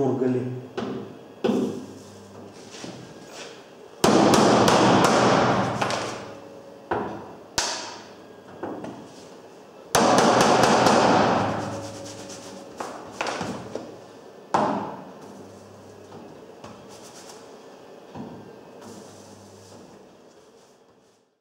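A hammer taps sharply on a thin metal panel.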